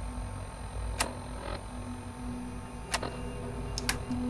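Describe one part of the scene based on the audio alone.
Short electronic beeps click as a menu is paged through.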